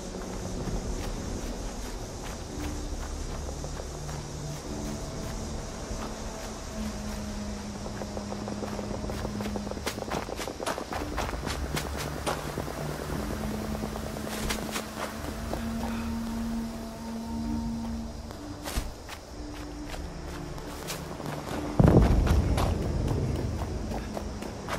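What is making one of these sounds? Heavy armoured footsteps thump on dirt and grass.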